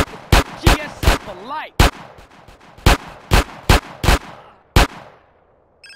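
A pistol fires a rapid series of sharp shots nearby.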